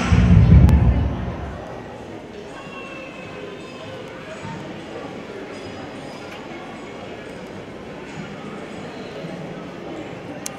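An audience murmurs softly in a large echoing hall.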